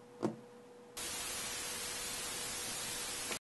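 Loud static hisses steadily.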